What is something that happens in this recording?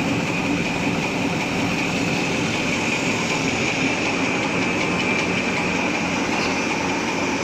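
A machine hums and rattles steadily at close range.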